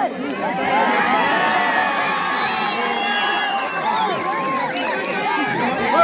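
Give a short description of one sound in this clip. A large outdoor crowd cheers and shouts excitedly.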